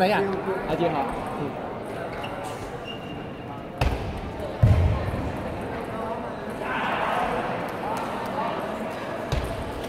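A table tennis ball clicks off paddles and the table in a large echoing hall.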